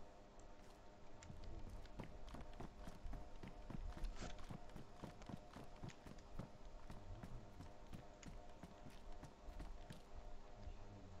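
Footsteps thud steadily on hard ground and floors.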